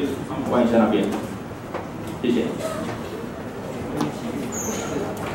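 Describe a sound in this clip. A young man speaks into a microphone over a loudspeaker in a room with some echo.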